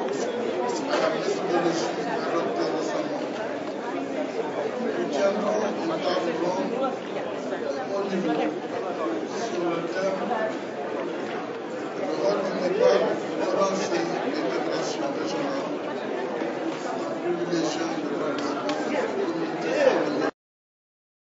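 A crowd of men and women murmur and chatter in a large hall.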